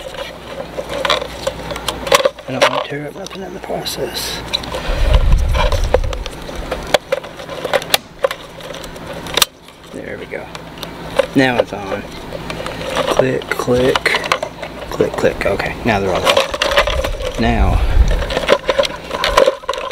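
Gloved hands click and clack the plastic parts of a fuel pump assembly.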